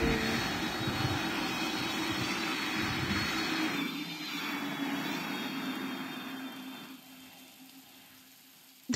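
Jet engines roar loudly and steadily, then fade.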